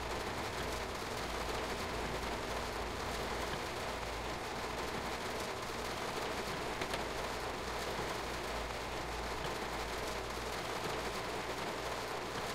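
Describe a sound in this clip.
Rain patters steadily on a train's windscreen.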